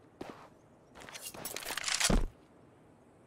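A rifle rattles as it is handled.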